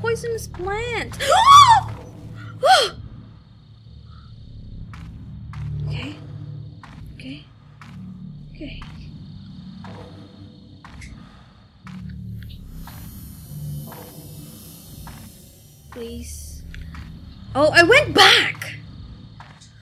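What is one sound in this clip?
A young woman talks and exclaims with animation into a close microphone.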